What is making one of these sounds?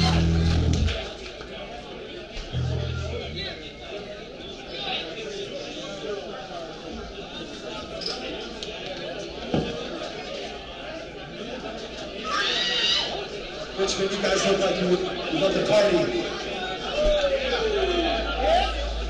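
A crowd talks and cheers nearby.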